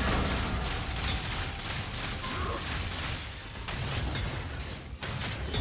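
Spell effects and weapon hits clash and crackle in a busy battle.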